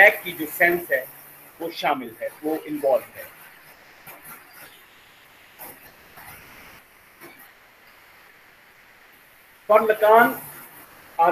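A man speaks calmly through a microphone, in pauses.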